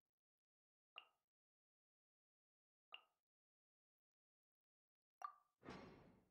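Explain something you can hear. Short soft menu chimes sound a few times.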